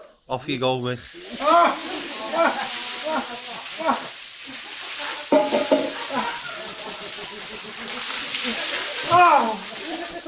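Water pours and splashes from a bucket onto a man's head.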